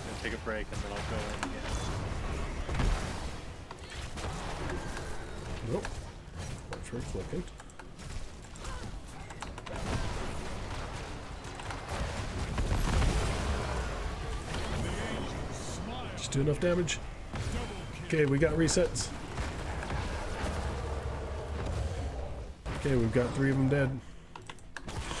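Game battle effects clash, zap and crackle.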